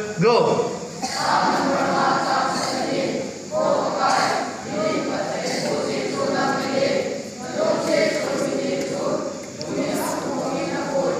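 A crowd of young people call out together.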